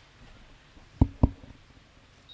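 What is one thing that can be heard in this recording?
A microphone thumps as it is handled.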